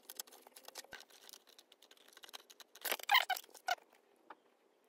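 A plastic car body clatters as it is handled.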